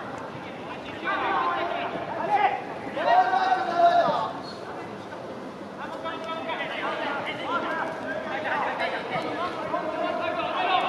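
Young men shout to each other on the pitch.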